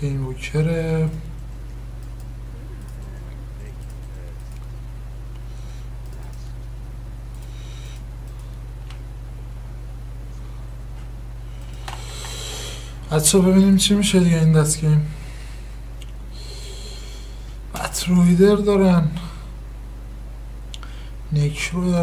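A young man talks close to a microphone, in short animated bursts.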